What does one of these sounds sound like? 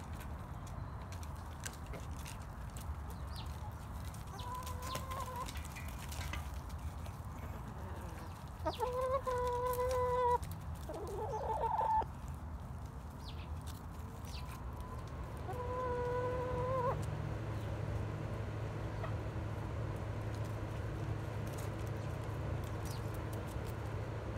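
Chickens scratch and step on dry wood chips.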